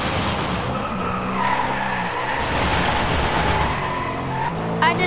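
Tyres screech as a car slides through a corner.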